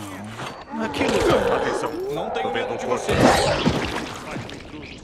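A man grunts and groans in pain.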